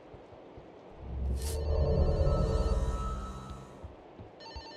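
A small object is picked up with a short chime.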